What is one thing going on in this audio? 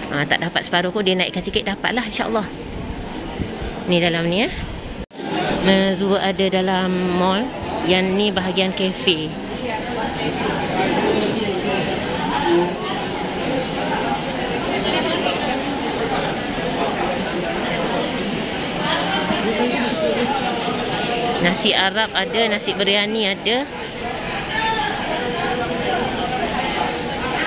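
Many people chatter around in an echoing indoor hall.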